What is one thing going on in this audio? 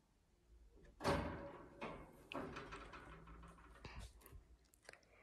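A hand rattles and taps a wire birdcage.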